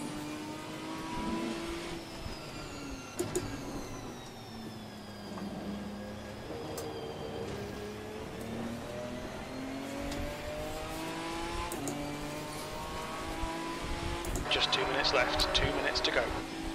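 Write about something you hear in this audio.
A racing car engine revs up and down through the gears.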